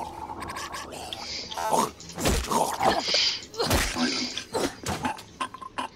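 Blows thud against a body during a scuffle.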